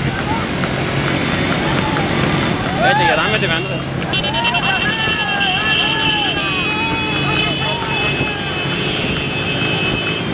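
Motorcycle engines drone as a pack of bikes rides along.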